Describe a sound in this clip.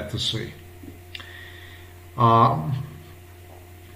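A middle-aged man speaks briefly and quietly close to a microphone.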